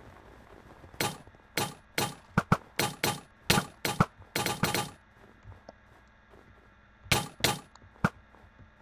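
Quick wooden clicks tap in a steady rhythm.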